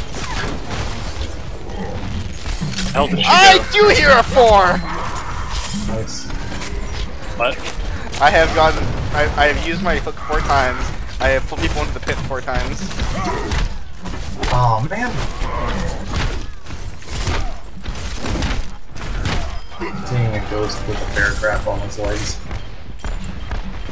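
Game gunfire crackles in rapid bursts.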